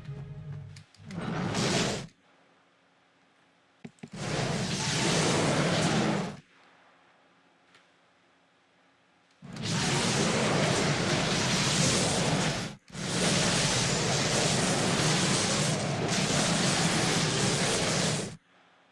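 Magic spells crackle and roar in a fight.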